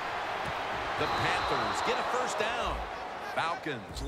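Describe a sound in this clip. A stadium crowd roars louder as a play unfolds.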